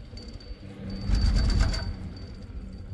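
A chairlift clatters loudly as it rolls past a tower.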